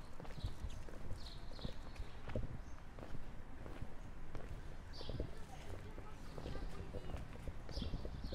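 Footsteps tap on a cobbled street nearby.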